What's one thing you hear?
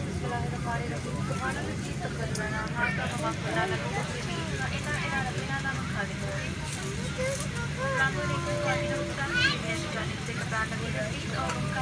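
Many people chatter nearby.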